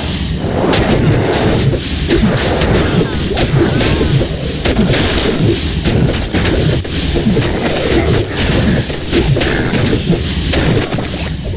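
Swords and blades clash and strike repeatedly in a fierce fight.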